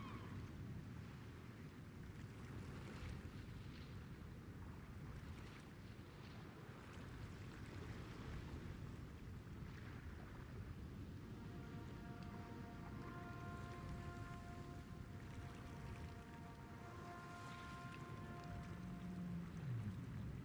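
Sea water laps gently against a ship's hull.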